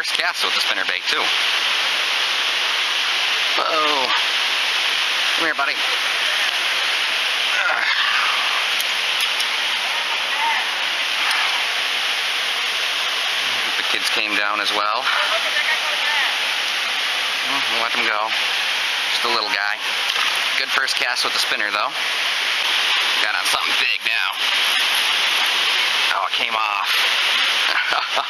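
Water rushes steadily over rocks nearby.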